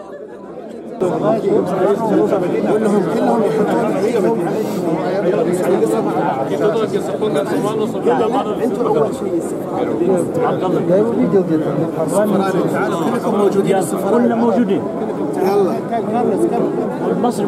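A crowd of men chatters loudly close by.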